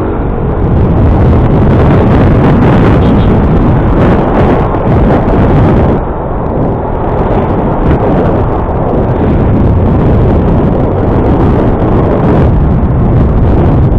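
Wind roars steadily and buffets against the microphone.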